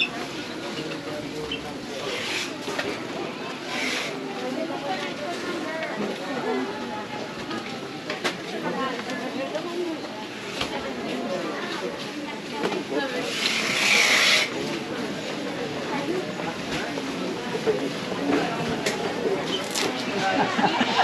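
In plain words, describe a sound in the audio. A crowd of shoppers murmurs and chatters nearby.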